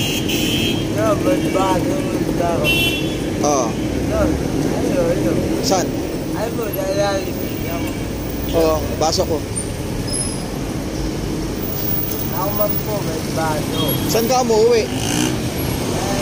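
An elderly man talks close by.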